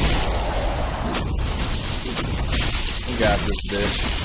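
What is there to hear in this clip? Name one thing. A sword clangs against a metal shield.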